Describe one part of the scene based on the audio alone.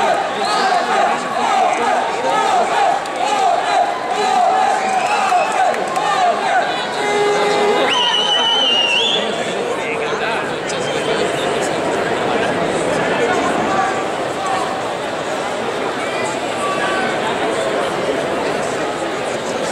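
A large crowd cheers and shouts in a big echoing hall.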